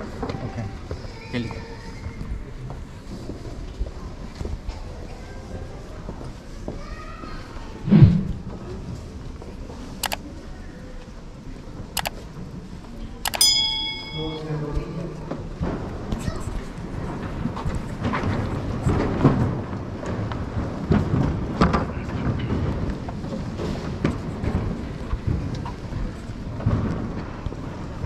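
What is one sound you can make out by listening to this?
Footsteps shuffle slowly across a floor.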